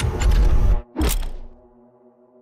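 A sharp whoosh sweeps past.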